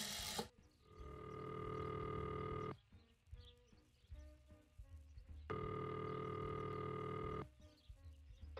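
A telephone ringing tone purrs steadily through a handset.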